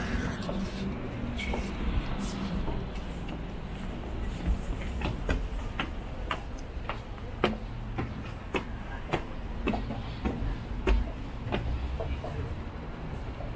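Footsteps tap on stairs and a walkway.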